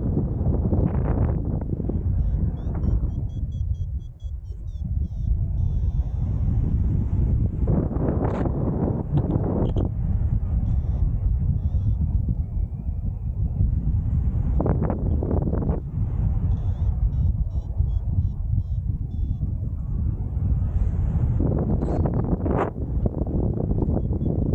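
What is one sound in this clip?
Strong wind roars and buffets loudly outdoors.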